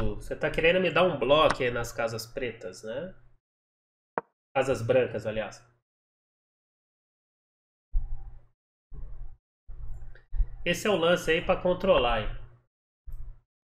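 A young man talks with animation into a close microphone, pausing now and then.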